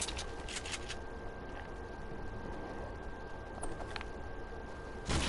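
Footsteps run over grass in a video game.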